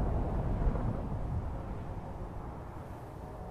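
A deep rumble of a large fire rolls and fades away.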